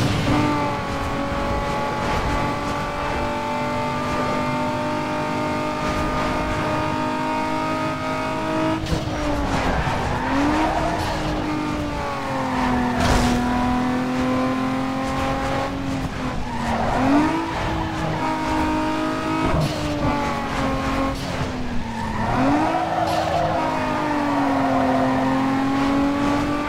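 A sports car engine roars at high revs, dropping in pitch with each gear change.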